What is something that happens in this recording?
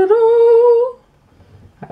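A handheld game console plays a short electronic tone.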